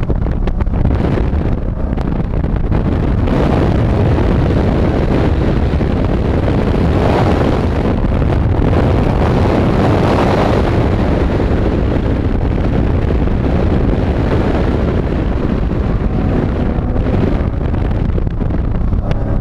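Wind rushes past an open car window.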